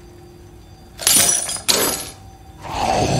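Bolt cutters snap through a metal chain.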